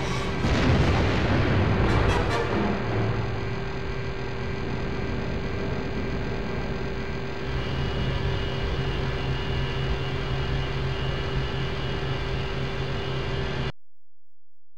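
A spaceship's engines roar and hum steadily, then cut off.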